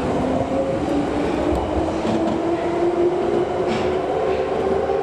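A moving subway train rumbles and whines steadily.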